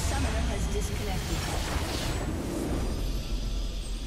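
A game's battle effects crash and explode loudly.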